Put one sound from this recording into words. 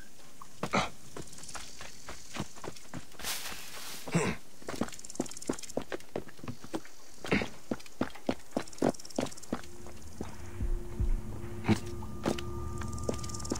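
Quick footsteps run and patter over hard ground and roof tiles.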